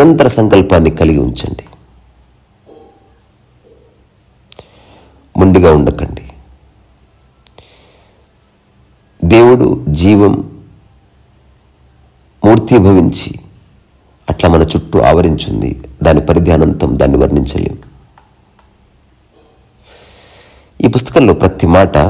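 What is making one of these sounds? A man speaks calmly, with long pauses between phrases.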